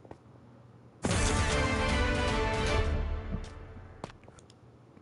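A short game victory jingle plays brightly, then fades.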